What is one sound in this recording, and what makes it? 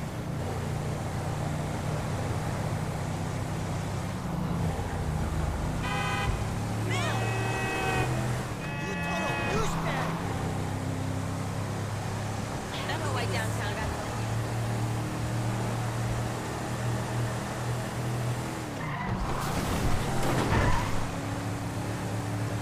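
An SUV engine hums as the SUV drives along an asphalt road.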